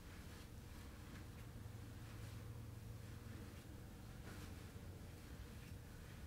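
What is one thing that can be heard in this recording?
Bare feet shuffle and press softly on bedding.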